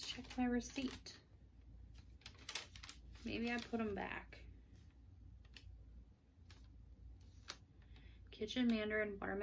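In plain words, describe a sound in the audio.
A woman speaks calmly close by, in short phrases.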